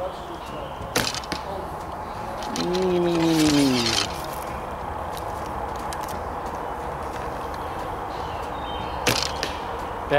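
A bowstring snaps as an arrow is shot.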